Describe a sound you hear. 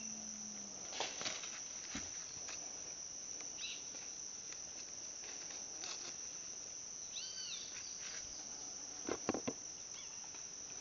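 Leaves rustle and stems snap as a hand picks tomatoes from a plant.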